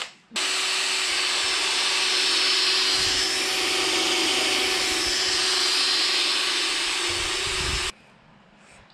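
A cordless drill whirs loudly as it bores into metal.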